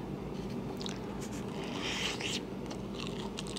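A young woman bites into a crisp peach with a crunch.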